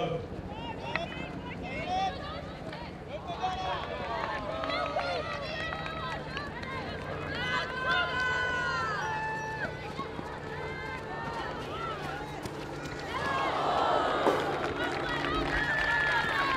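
A stadium crowd murmurs and rises in excitement.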